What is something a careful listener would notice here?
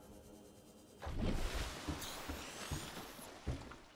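Water splashes loudly as a swimmer breaks the surface.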